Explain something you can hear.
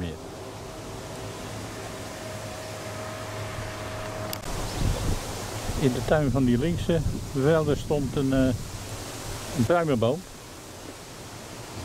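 Wind gusts outdoors and rustles through tall grass.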